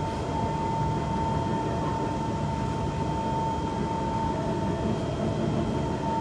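A train's motor whines with a steady high hum.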